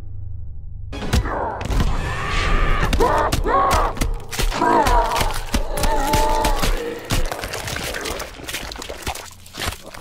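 Heavy fleshy blows thud and crunch.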